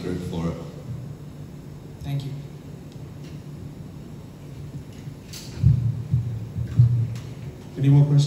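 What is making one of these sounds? A young man speaks calmly into a microphone, in short bursts with pauses.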